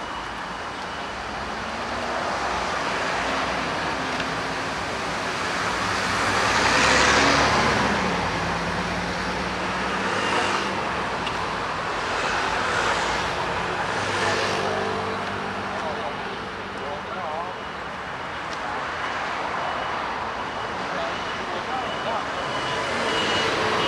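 Traffic rumbles past steadily on a busy road outdoors.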